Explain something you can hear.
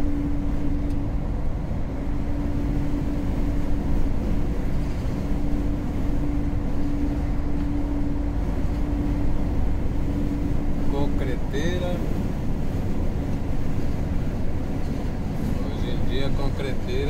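A vehicle's engine drones steadily with a low rumble.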